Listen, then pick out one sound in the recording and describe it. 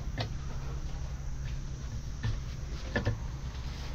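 Apples knock softly onto a plate.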